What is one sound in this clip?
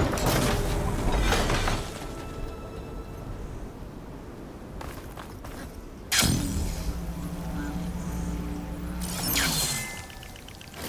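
Electricity crackles and zaps in short bursts.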